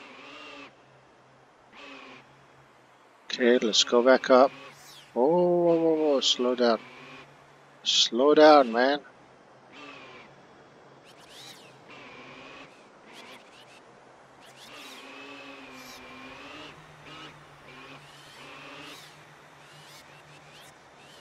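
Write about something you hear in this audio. A small toy car's motor hums steadily as it drives.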